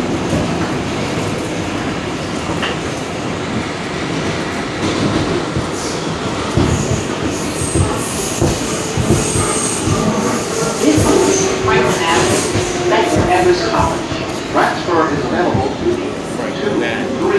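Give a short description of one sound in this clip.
A subway train rumbles and rattles steadily along the tracks.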